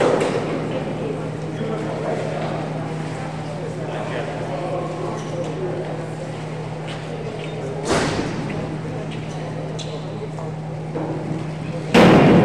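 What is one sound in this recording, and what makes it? A swimmer splashes while swimming to the pool edge.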